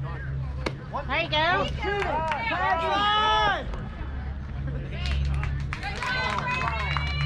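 Young players shout and cheer outdoors, some way off.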